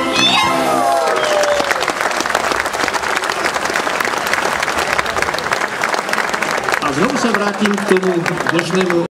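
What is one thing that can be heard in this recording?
An audience claps in applause.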